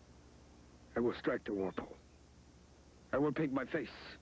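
An elderly man speaks with urgency close by.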